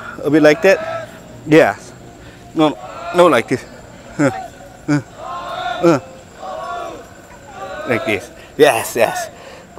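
A young man talks cheerfully close by, outdoors.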